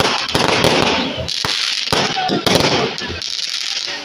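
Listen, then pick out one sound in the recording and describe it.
Fireworks burst and crackle overhead.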